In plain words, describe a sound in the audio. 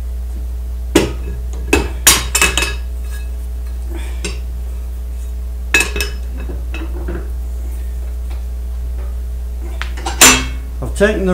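Metal clanks sharply a few times.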